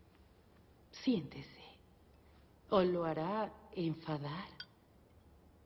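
A woman speaks playfully nearby.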